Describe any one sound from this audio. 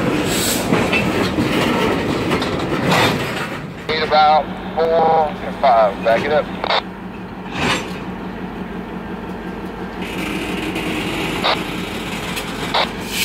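Tank cars roll slowly past, wheels clicking over rail joints.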